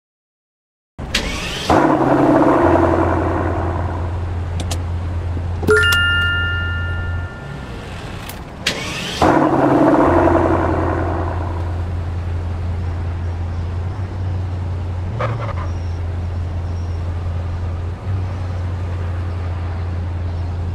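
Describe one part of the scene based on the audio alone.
A car engine starts and revs, then rumbles steadily.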